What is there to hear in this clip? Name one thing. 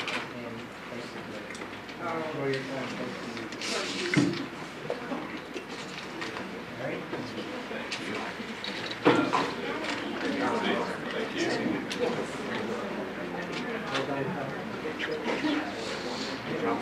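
Several men and women chat in low voices.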